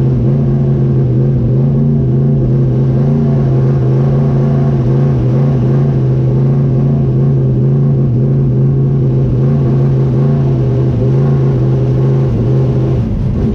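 A race car engine idles loudly and steadily, heard from inside the car.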